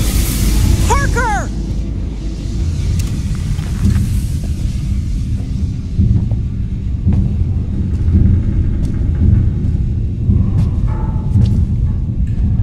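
A low mechanical rumble drones steadily.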